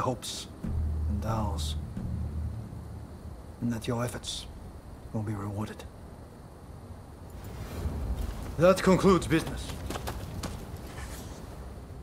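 A man speaks calmly and gravely, close by.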